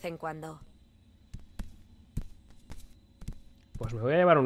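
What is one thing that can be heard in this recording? Footsteps crunch softly on a dirt path.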